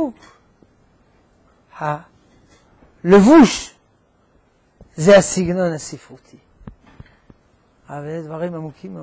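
An elderly man speaks with animation through a clip-on microphone, in short bursts with pauses.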